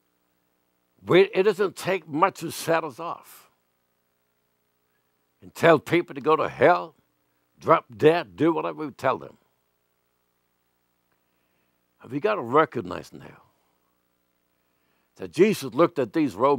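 An elderly man speaks calmly and deliberately into a microphone, pausing between phrases.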